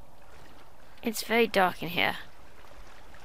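A young woman speaks briefly and with animation, close to a headset microphone.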